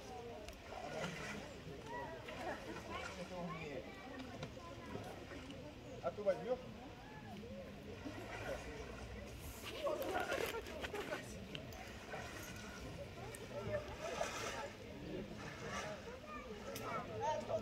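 An elephant splashes through shallow water.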